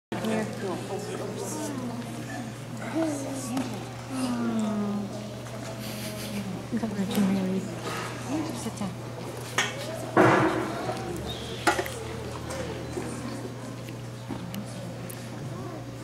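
Young children talk and call out in a large echoing hall.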